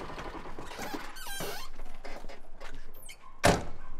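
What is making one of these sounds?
A car door opens with a clunk.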